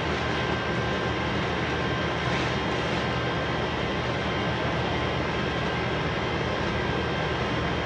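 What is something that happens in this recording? A plastic bag rustles and crinkles as it is dragged.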